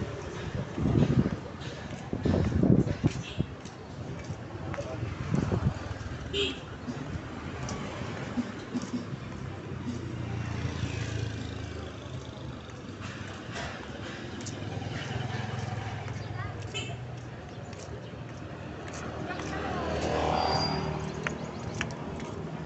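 Traffic hums along an outdoor street.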